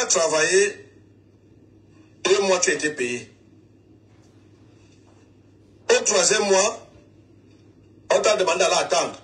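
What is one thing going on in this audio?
A man speaks close by in short bursts with pauses between them.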